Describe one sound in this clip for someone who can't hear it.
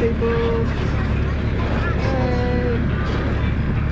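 A toddler babbles close by.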